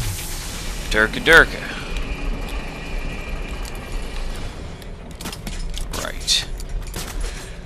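Large metal gears clank and grind as they turn.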